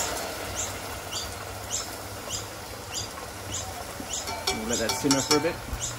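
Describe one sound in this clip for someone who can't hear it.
A wooden spoon stirs and scrapes in a small pot.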